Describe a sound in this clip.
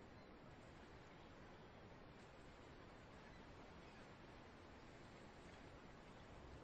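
Water churns and splashes behind a boat.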